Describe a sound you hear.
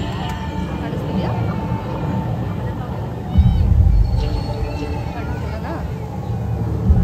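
Fountain water sprays and splashes steadily.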